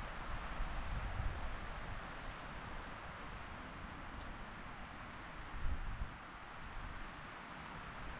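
Footsteps crunch softly on the forest floor.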